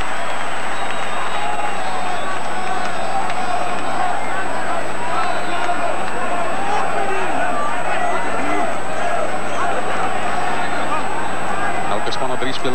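A large crowd roars and cheers in an open stadium.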